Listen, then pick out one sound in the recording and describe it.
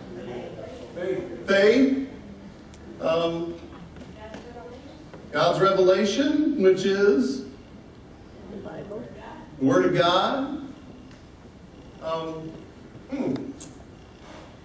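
A man speaks calmly and warmly through a microphone, with pauses.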